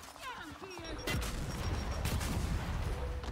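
A smoke grenade bursts with a dull thump and hisses.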